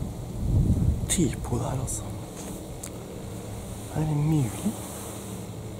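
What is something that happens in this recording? A young man speaks quietly and calmly close by.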